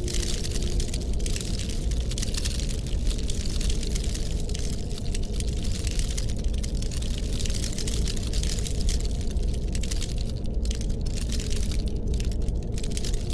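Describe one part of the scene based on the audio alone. A lockpick scrapes and clicks softly inside a lock.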